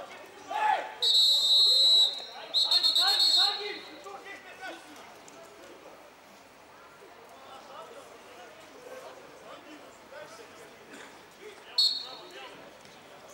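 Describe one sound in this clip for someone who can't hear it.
A referee's whistle blows in sharp, shrill blasts.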